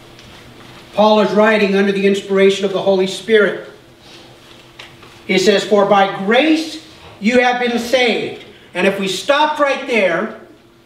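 A middle-aged man reads aloud and speaks through a microphone in an echoing hall.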